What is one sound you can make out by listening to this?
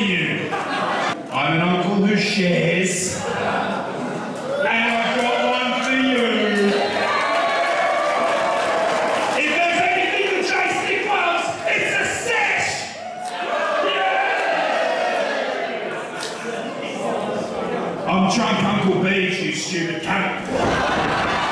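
A man answers loudly into a microphone.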